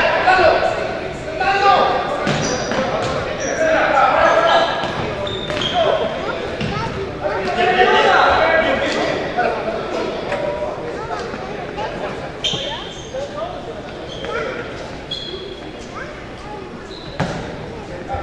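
Sneakers squeak sharply on a hard court floor, echoing in a large hall.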